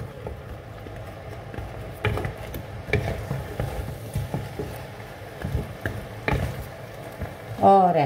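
A wooden spoon scrapes and knocks in a pot.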